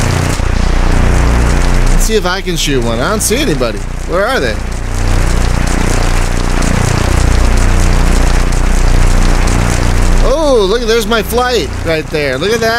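A piston aircraft engine drones.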